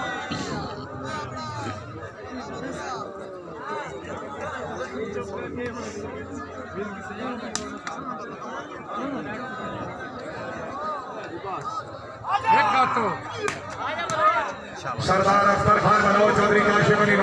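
A large outdoor crowd chatters and calls out throughout.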